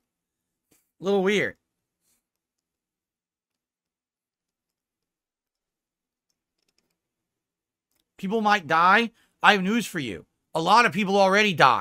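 A middle-aged man speaks close to a microphone with animation.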